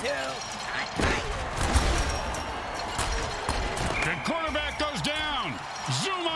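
Armoured players collide with heavy thuds.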